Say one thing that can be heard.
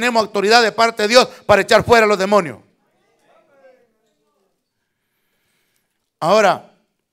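A middle-aged man preaches with animation into a microphone.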